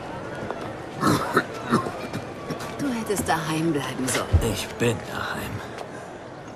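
An elderly man groans and speaks with strain, close by.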